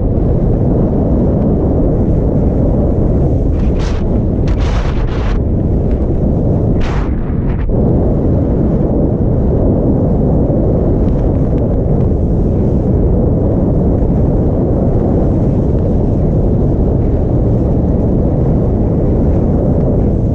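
Strong wind roars across the microphone outdoors.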